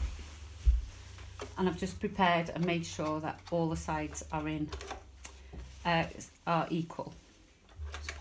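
A serger machine hums as it stitches.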